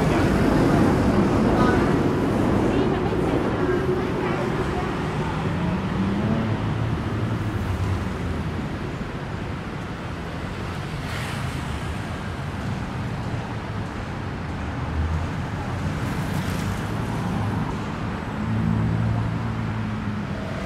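Motorbikes pass by with buzzing engines.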